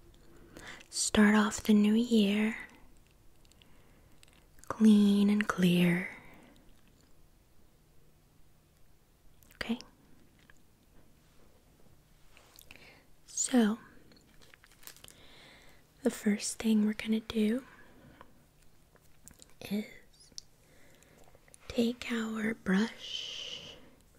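A woman speaks softly and closely into a microphone, in short bursts.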